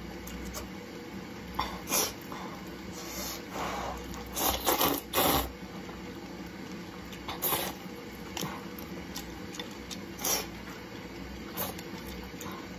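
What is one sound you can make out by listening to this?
A young woman chews food with wet smacking sounds.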